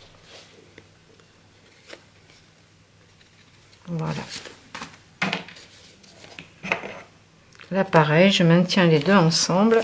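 Paper rustles and flaps as it is handled.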